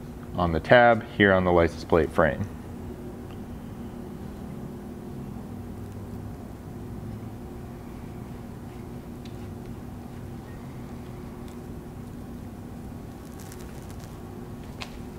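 Small metal parts click and tap as a man handles them.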